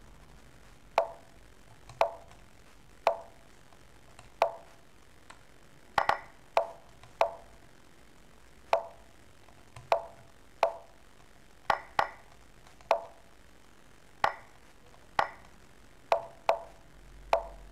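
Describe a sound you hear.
Short, crisp clicks sound as chess pieces are moved in a game, every second or so.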